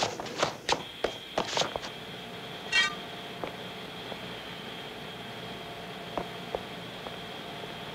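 A pole knocks sharply against hard objects.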